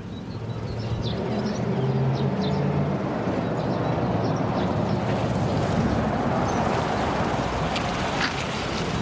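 Car engines rumble as vehicles drive up a road.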